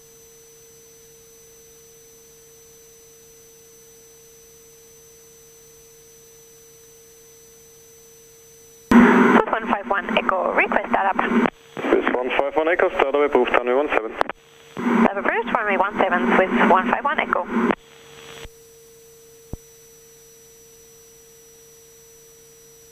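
The turbo-diesel engine of a single-engine propeller plane drones steadily in the cabin.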